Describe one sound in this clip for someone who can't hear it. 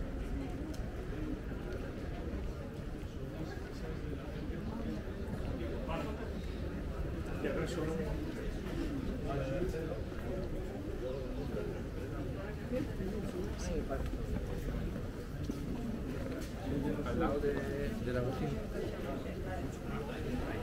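Footsteps tap on cobblestones.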